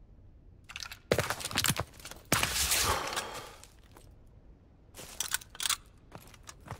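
A shotgun is pumped with sharp metallic clacks.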